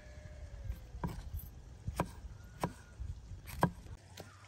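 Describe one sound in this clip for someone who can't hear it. A knife slices through mushrooms and taps on a wooden board.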